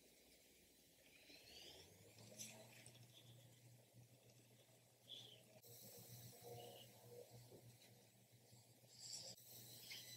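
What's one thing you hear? A makeup brush softly sweeps against skin.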